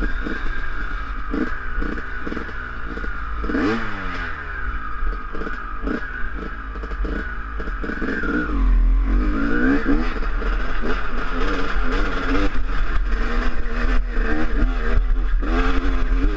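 A dirt bike engine revs and buzzes up close, rising and falling in pitch.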